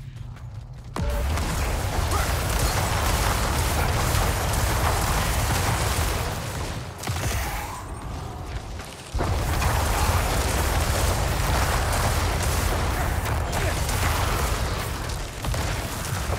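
Magic blasts and explosions roar in dense bursts.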